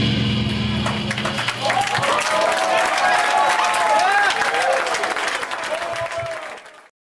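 A rock band plays loudly through amplifiers in an echoing room.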